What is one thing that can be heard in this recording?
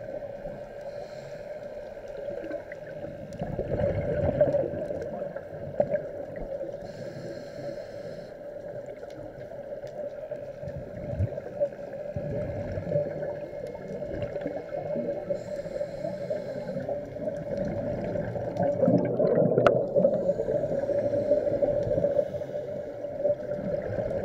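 Divers' breathing bubbles gurgle and rumble underwater.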